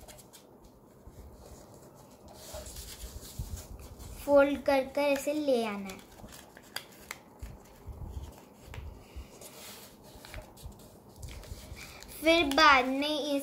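Paper rustles and creases softly as it is folded.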